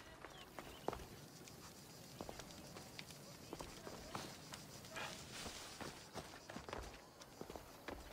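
Footsteps tap steadily on stone paving.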